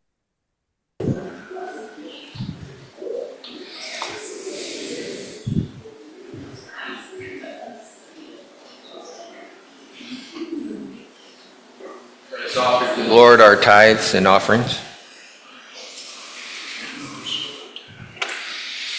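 Several people chat quietly in a large echoing hall.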